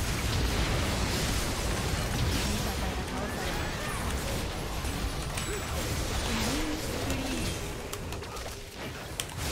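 Fantasy battle sound effects crash and whoosh rapidly.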